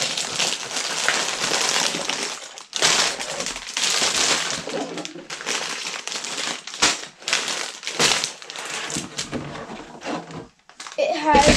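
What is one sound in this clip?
Plastic bags and cardboard rustle and crinkle close by.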